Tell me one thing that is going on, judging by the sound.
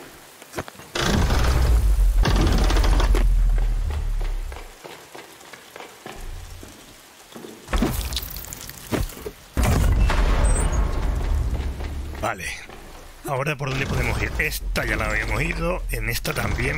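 A heavy machine rumbles and whirs loudly.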